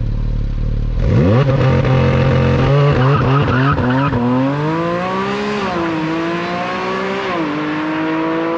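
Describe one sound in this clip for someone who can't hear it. A sports car accelerates hard away, its engine roaring through the gears and fading into the distance.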